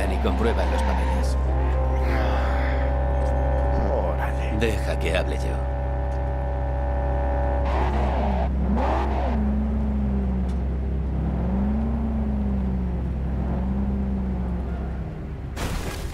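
A car engine hums steadily as the car drives.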